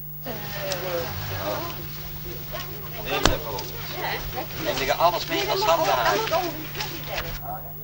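Several adults talk casually outdoors nearby.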